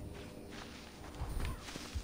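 Footsteps rustle through dry grass.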